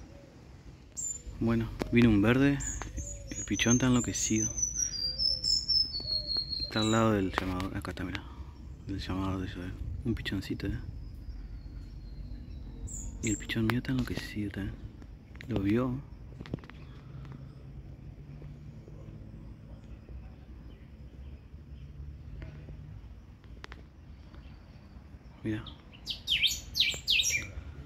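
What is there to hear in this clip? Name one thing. A small bird chirps in quick bursts nearby.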